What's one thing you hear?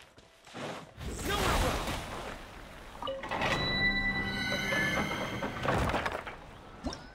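A heavy stone door rumbles open with a shimmering magical swell.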